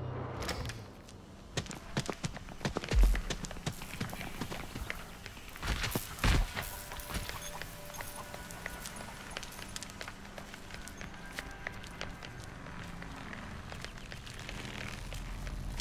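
Quick footsteps run over dirt and grass.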